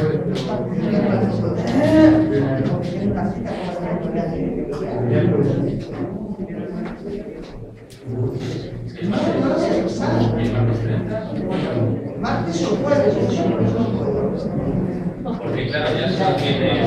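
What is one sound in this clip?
A middle-aged man speaks calmly to a group.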